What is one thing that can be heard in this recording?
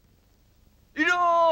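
A boy speaks up loudly.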